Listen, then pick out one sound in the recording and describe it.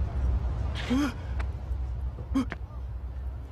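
A young man groans in pain close by.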